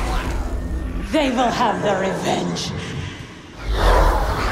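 A young woman speaks gravely.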